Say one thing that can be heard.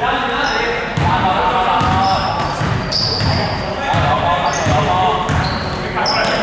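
A basketball thumps as it is dribbled in a large echoing hall.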